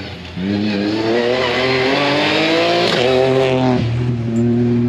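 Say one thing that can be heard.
Tyres hiss on a paved road as a car speeds past.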